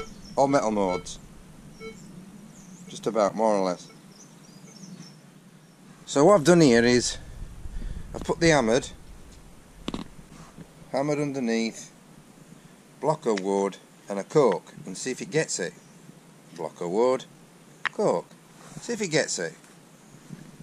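A metal detector gives short warbling tones that rise and fall in pitch, again and again.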